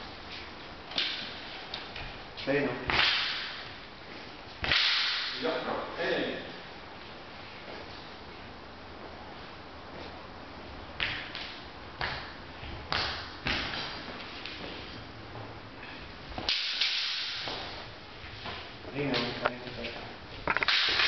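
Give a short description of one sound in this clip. Wooden staffs clack together in a large echoing hall.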